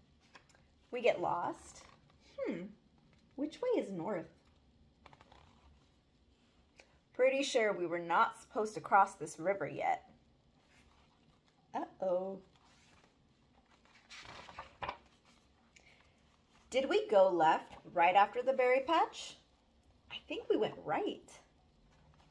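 A young girl reads aloud with animation, close by.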